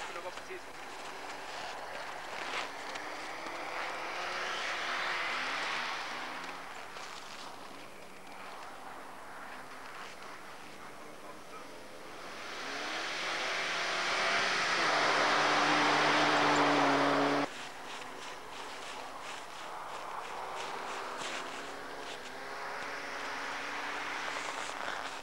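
A car engine revs hard and roars as the car speeds past.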